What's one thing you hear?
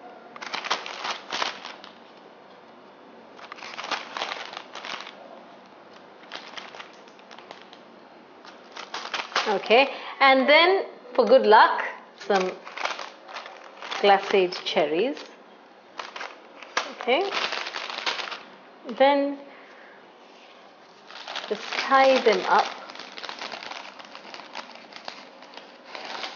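A plastic bag crinkles in a woman's hands.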